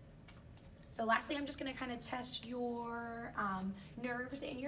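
A young woman speaks calmly and clearly to a listener nearby.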